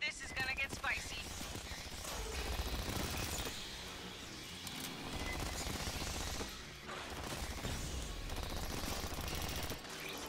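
Rapid gunfire rattles continuously.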